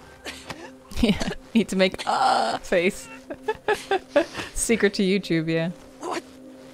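A young woman talks and laughs close to a microphone.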